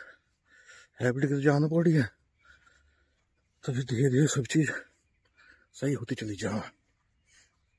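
A middle-aged man speaks calmly, close to the microphone, in short bursts with pauses.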